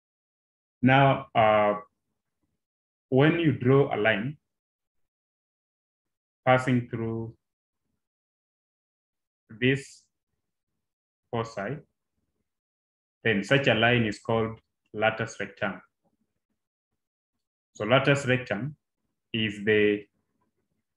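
A man speaks calmly into a close microphone, in short phrases with pauses.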